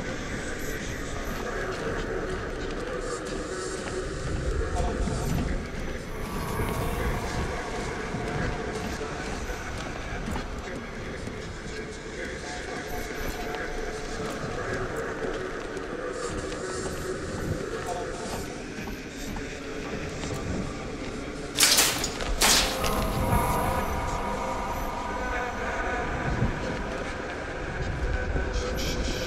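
Heavy footsteps clank on a metal walkway.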